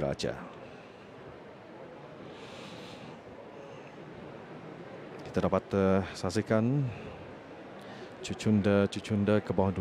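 A crowd of guests chatters softly in a large echoing hall.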